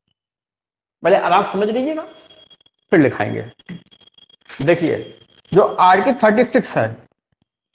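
A middle-aged man lectures with animation, close by.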